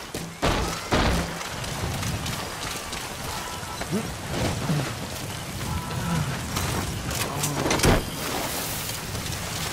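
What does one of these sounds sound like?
Footsteps thud on the ground as a soldier runs.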